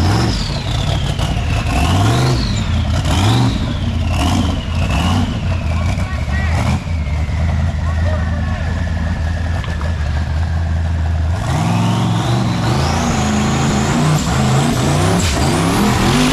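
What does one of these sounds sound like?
An off-road buggy's engine revs hard in loud bursts.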